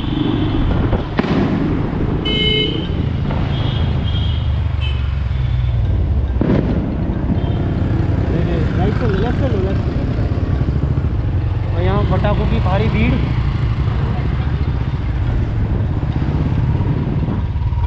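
A motorbike engine rumbles steadily while riding.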